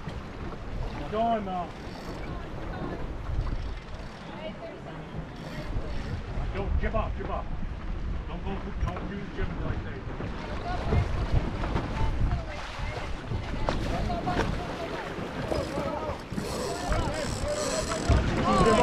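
Men talk nearby, faint over the wind.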